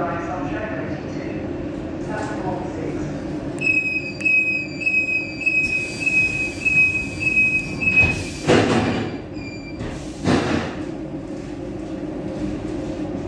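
A train engine hums steadily from inside the cab.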